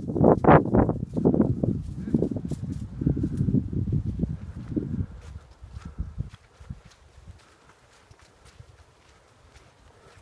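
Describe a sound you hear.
Footsteps tread softly through grass.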